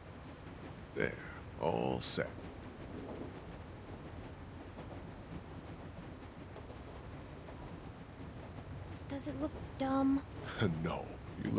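A young girl speaks quietly, close by.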